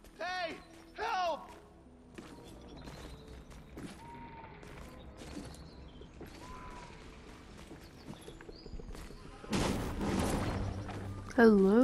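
Footsteps run over ground.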